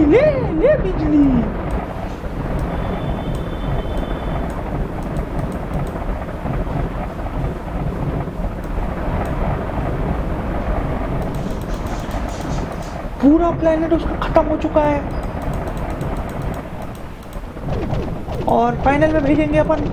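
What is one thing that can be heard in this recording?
A young man speaks with animation into a microphone close by.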